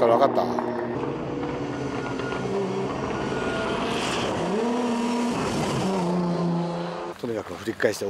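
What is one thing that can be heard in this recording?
A car engine hums as a car approaches.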